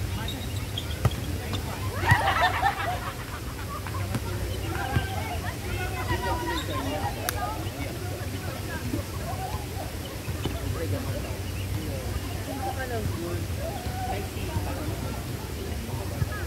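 Young men and women call out and shout to each other outdoors.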